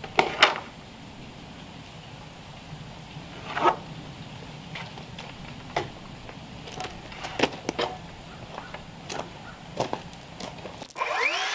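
Wooden boards knock and clack nearby.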